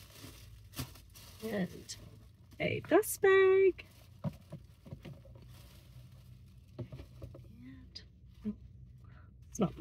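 Paper rustles and crinkles as a bag is handled.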